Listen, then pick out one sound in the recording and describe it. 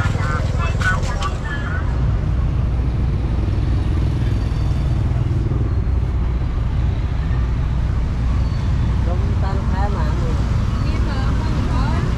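Motorbike engines hum and traffic passes by steadily outdoors.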